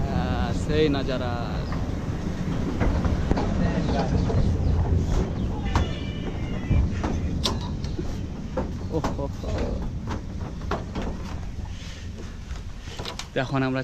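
A small open train rattles and rumbles along its track.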